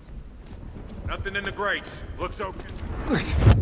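A man speaks gruffly.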